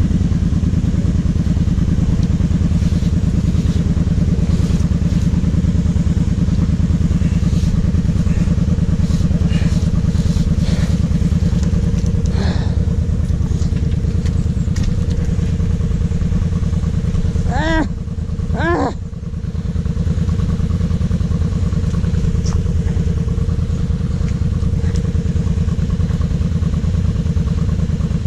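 Thick mud squelches and splashes around the quad bike's wheels.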